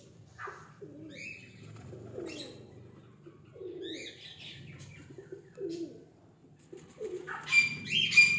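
A pigeon coos softly and repeatedly close by.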